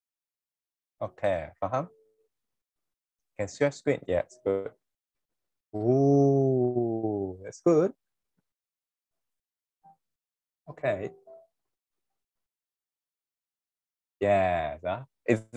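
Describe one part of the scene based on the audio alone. A man speaks in short bursts over an online call.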